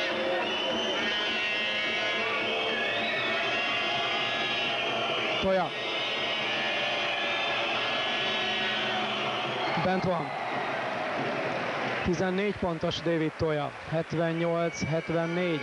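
A large crowd murmurs and whistles in an echoing hall.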